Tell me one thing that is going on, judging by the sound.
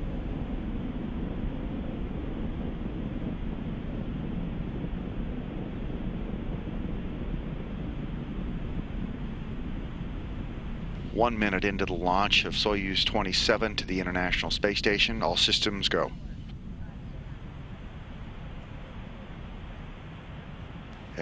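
A distant rocket engine rumbles low and steadily.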